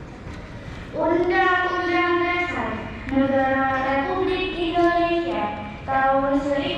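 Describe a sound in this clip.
A girl reads out loudly through a microphone and loudspeaker outdoors.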